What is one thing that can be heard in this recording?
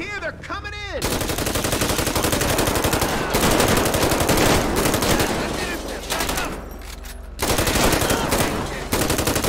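Rapid gunfire rattles in bursts, loud and close.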